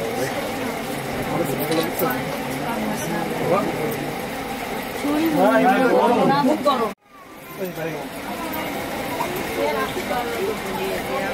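Several women talk and chatter over one another close by.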